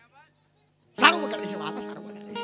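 A harmonium plays a sustained chord.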